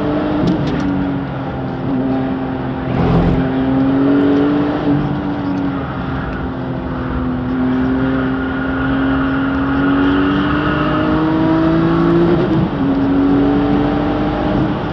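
Tyres hum on the track.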